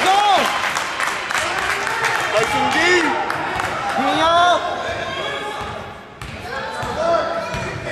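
Sneakers squeak sharply on a hard floor in an echoing gym.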